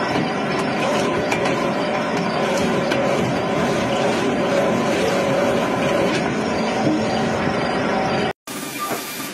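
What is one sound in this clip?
A log debarking machine rumbles and grinds loudly outdoors.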